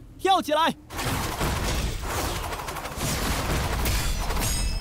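A heavy impact crashes with a burst of energy.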